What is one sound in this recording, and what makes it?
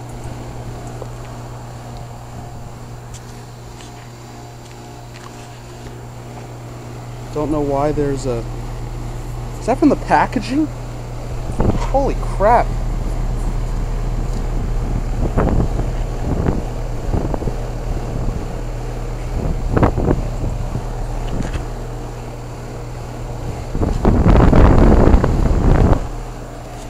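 An air conditioner's fan hums and whirs steadily close by.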